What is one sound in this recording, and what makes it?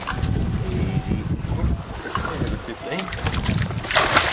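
A fish thrashes and splashes at the surface.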